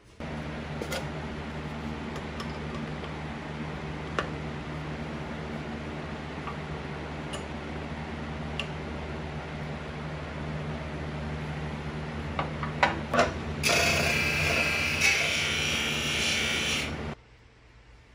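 A bench motor hums steadily.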